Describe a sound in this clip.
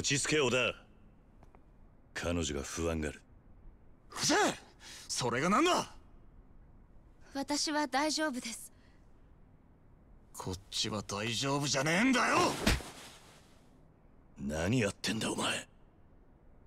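A man speaks firmly and calmly.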